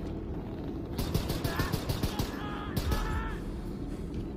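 Rapid gunfire bursts close by.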